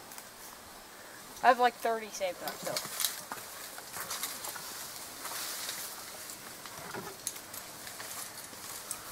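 Leaves and branches rustle and creak as a climber moves through a tree.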